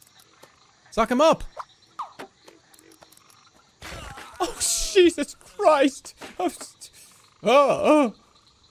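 Playful warbling cartoon sounds chirp in short bursts.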